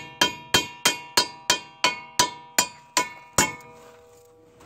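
Metal rings out with sharp, repeated clangs at an even pace.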